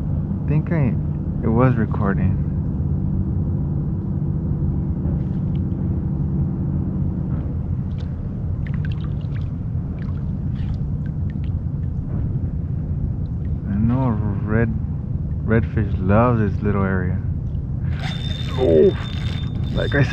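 Water laps softly against a kayak's hull.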